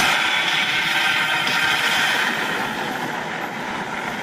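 Explosions boom and water splashes loudly from an arcade game's speakers.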